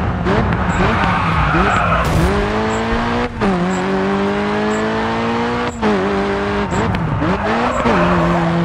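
A car engine revs hard, rising in pitch and dropping sharply as the gears change.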